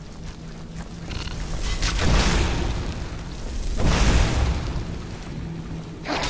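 Flames roar and burst as a fire spell is cast.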